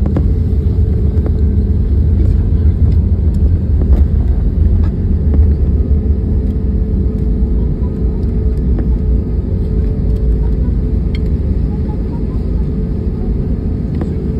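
Landing gear wheels rumble and thump over runway joints.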